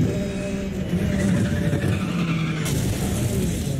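Tyres screech as a car skids through a turn.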